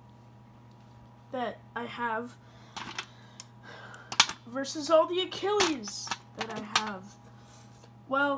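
Plastic spinning-top toys clack against each other on a hard surface.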